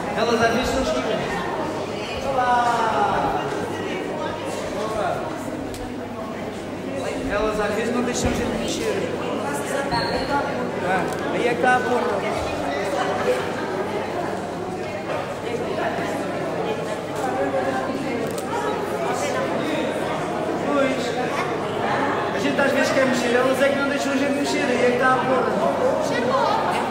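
A button accordion plays a lively dance tune through a microphone.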